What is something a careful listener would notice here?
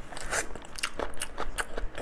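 Meat tears apart with a wet squelch.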